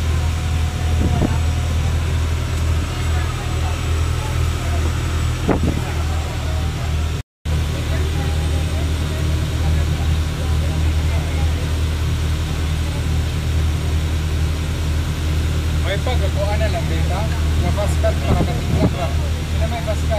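A boat engine drones steadily and low.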